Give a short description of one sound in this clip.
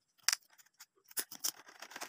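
Scissors snip through a strip.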